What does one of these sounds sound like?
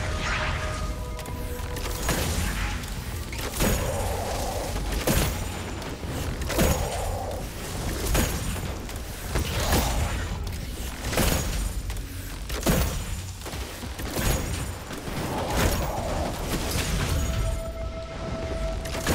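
A heavy weapon fires loud booming shots at a steady pace.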